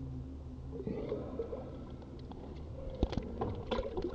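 Water splashes and bubbles close by.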